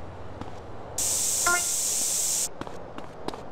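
A spray can hisses.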